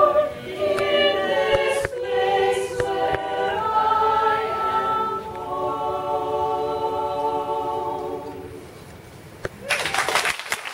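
A women's choir sings together in a large room, ending on a held note.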